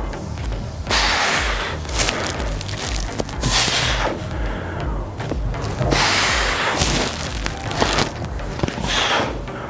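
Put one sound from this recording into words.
A man breathes out hard with each movement.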